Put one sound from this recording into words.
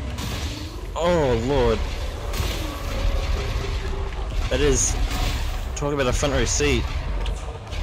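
Laser guns fire in warbling bursts.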